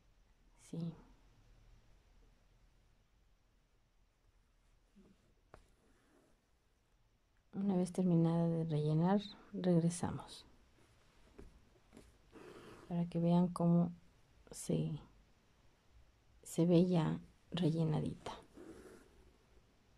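Thread rasps softly as a needle pulls it through taut cloth.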